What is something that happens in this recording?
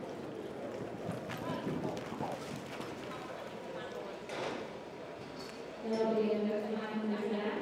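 A horse gallops, its hooves thudding on soft dirt.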